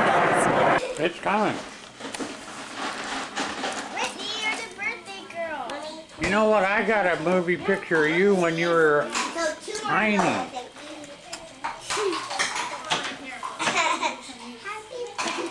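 Young children talk and chatter nearby.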